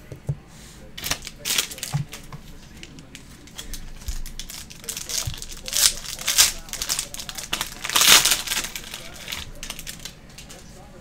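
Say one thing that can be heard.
Foil wrapping crinkles and tears.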